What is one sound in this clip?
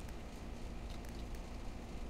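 Fireworks burst and crackle high overhead.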